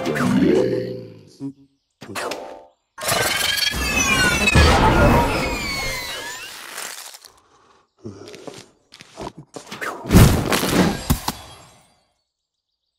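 Game sound effects chime and burst in quick bursts.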